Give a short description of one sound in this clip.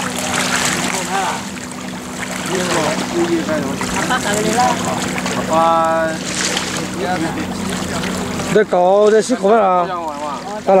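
Wind blows across open water.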